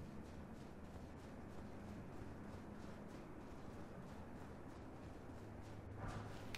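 Armoured footsteps run across stone.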